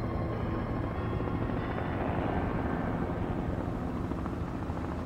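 Burning rubble gives off a deep, steady rumble.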